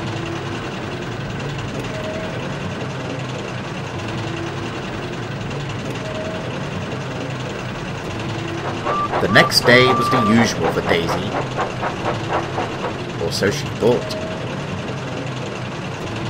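A diesel train rumbles past on the rails.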